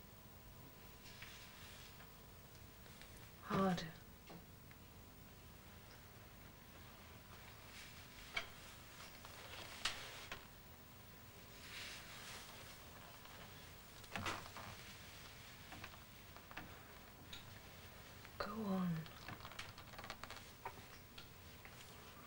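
A hairbrush swishes through long hair in soft strokes.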